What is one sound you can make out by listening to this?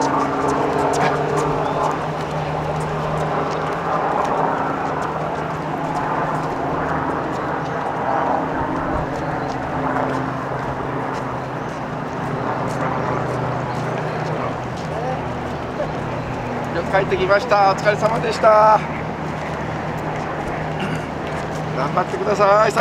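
Runners' shoes patter on pavement as they jog past.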